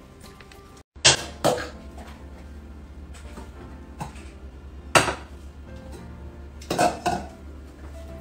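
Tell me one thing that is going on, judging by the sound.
Metal pots and utensils clank and knock.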